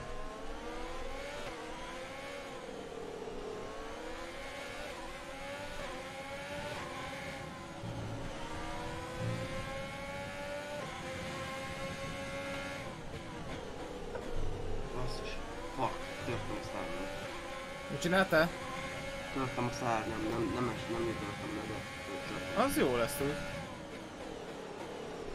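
A racing car engine whines, rising and falling in pitch as gears shift.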